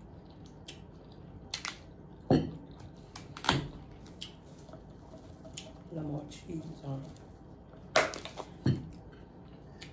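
A bottle cap clicks open and shut.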